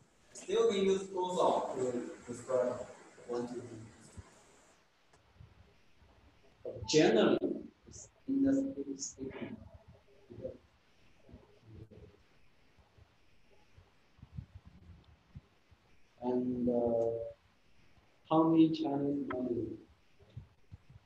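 A young man speaks in a teaching tone, in short bursts with pauses.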